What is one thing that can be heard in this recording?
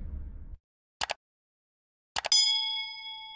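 A mouse clicks twice.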